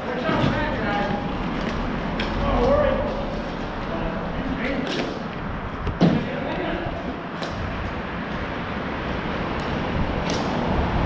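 Skate wheels roll and scrape on a hard rink floor.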